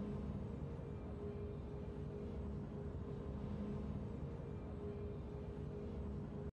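Calm, sustained game music plays steadily.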